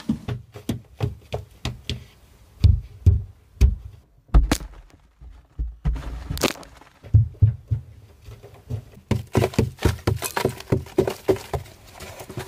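Bare feet scuff and shuffle on loose dirt.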